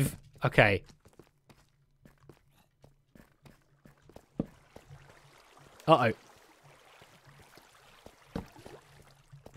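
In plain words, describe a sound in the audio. Footsteps tread slowly over stone.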